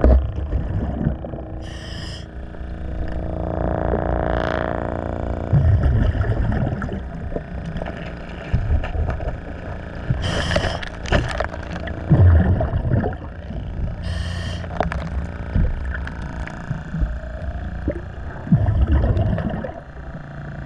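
Water rumbles and swirls with a low, muffled sound.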